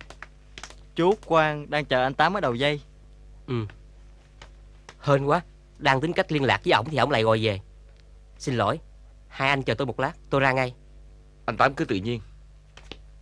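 Middle-aged men talk calmly nearby.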